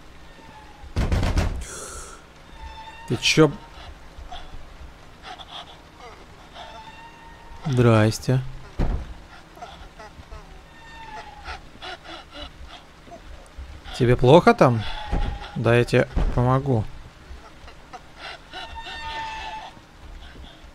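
A man talks into a close microphone with animation, now and then exclaiming loudly.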